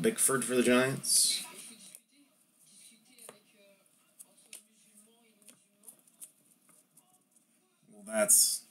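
Stiff paper cards flick and tap softly as a hand sorts through them.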